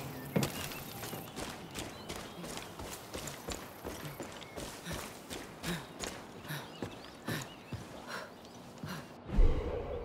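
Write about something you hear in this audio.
Footsteps crunch quickly over dirt and then wooden boards.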